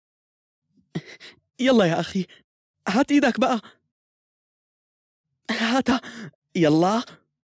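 A young man speaks playfully and with animation, close by.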